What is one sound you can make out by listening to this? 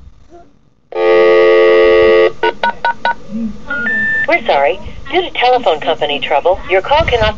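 A phone plays loud electronic music and tones.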